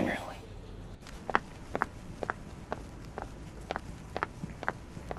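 Heels click on a hard floor as a woman walks away.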